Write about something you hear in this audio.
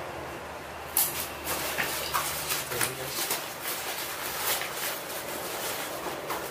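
A backpack's fabric rustles and crinkles as it is handled.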